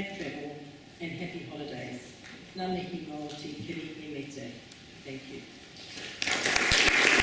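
A middle-aged woman speaks calmly through a microphone in a large hall.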